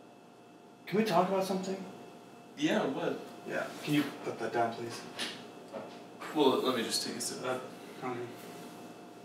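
A second young man answers calmly close by.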